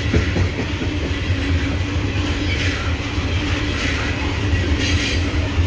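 Loaded freight hopper cars rumble past on the rails.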